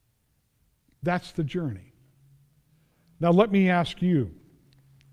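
An older man speaks with emphasis through a microphone.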